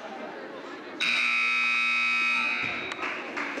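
A buzzer sounds loudly for about a second and a half.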